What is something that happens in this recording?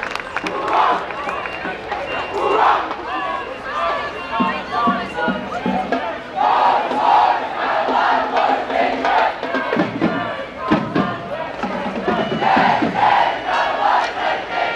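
A crowd of adults and children chatters and calls out outdoors.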